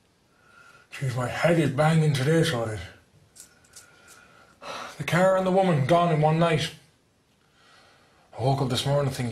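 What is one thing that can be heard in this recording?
A young man sings loudly through a mouthful of toothpaste.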